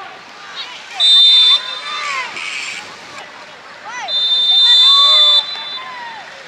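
A referee blows a whistle in long shrill blasts.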